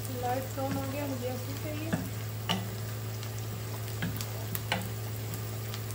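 A wooden spoon scrapes and stirs in a frying pan.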